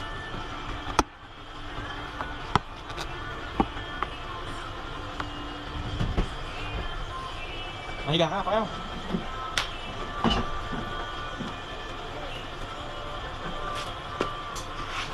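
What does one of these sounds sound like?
Objects knock and clatter as they are handled.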